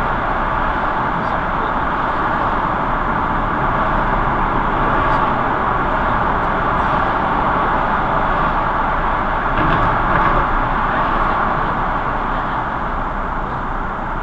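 A car's engine and tyres rumble steadily, echoing inside a tunnel.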